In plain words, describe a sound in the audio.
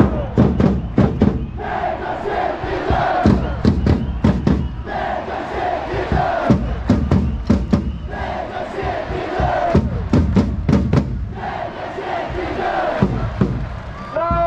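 A crowd claps in rhythm.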